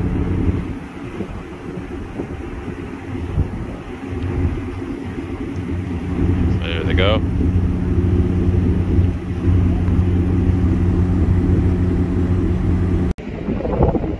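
A ship's engine hums low and steadily.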